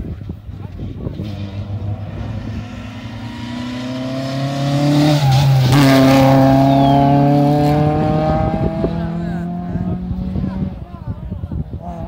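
A rally car engine roars closer, climbing in pitch, then passes close by and fades away.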